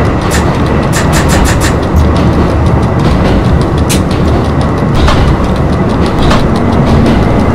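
Wheels click over rail joints.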